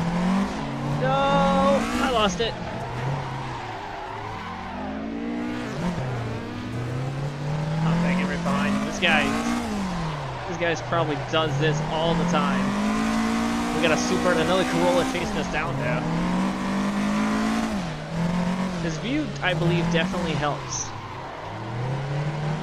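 Tyres squeal as a car slides through corners.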